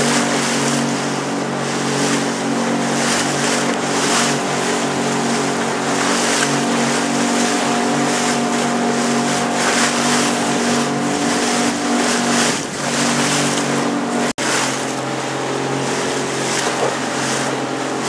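Waves break and wash against rocks.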